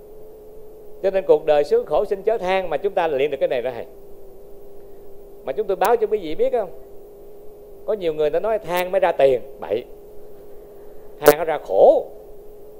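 A middle-aged man speaks warmly into a microphone, in short bursts with pauses.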